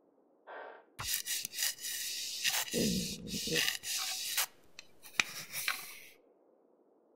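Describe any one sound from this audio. A rifle is scrubbed and scraped clean with a brush.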